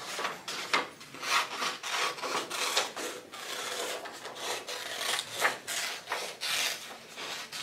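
Stiff paper rustles and flaps as it is handled close by.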